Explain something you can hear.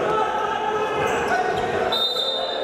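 Sneakers squeak on a wooden court floor.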